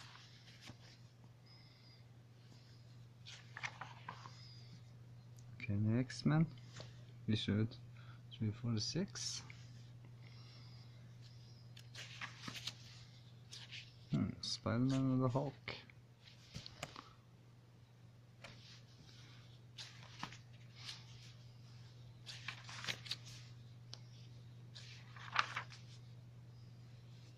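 Paper pages rustle and flip as a comic book is leafed through.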